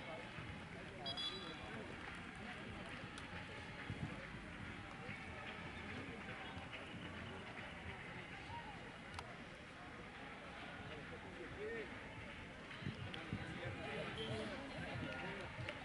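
A crowd of young people chatters and shouts outdoors, some way off.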